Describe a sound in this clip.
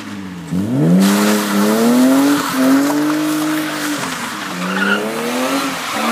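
Tyres screech as a car slides on a wet road.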